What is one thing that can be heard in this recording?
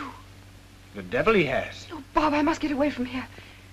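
A young woman speaks with surprise.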